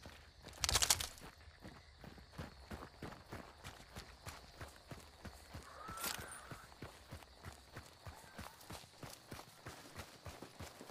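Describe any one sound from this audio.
Footsteps crunch steadily over dirt and grass.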